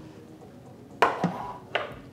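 A plastic lid knocks down onto a hard counter.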